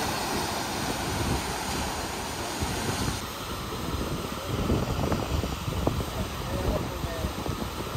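Wind blows hard across the open coast.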